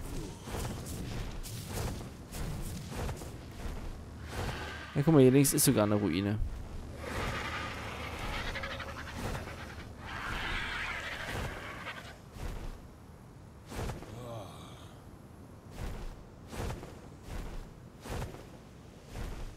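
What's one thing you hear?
Large wings flap in steady, heavy beats.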